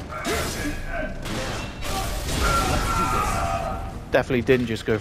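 Gunfire and explosions crackle and boom loudly.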